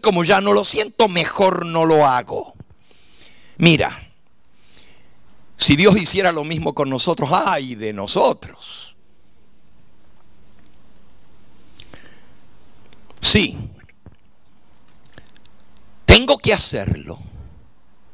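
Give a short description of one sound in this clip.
An elderly man preaches with emphasis through a microphone and loudspeakers, with pauses between phrases.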